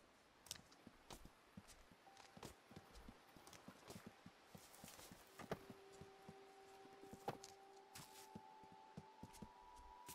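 Small quick footsteps patter and rustle over twigs and leaves.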